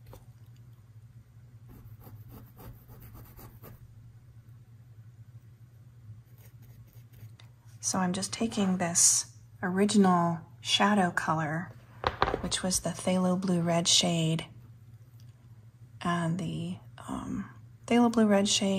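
A paintbrush softly strokes and dabs on canvas.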